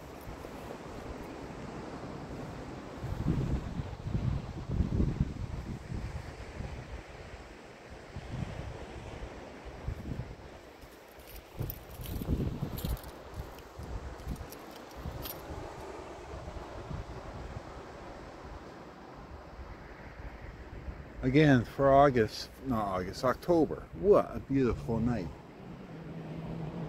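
Small waves lap softly at the shore.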